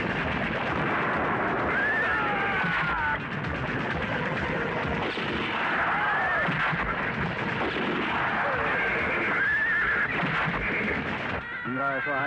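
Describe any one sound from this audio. Horses gallop across hard ground with pounding hooves.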